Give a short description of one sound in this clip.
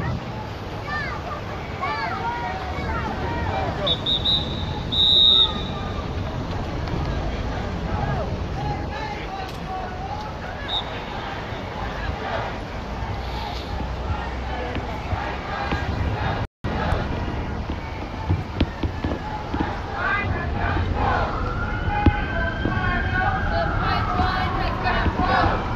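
A crowd of protesters chants and shouts outdoors in a busy street.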